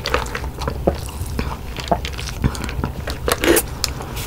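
A young woman sips a drink loudly through a straw.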